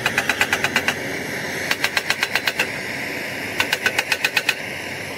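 Small metal tools clink and rattle in a tray.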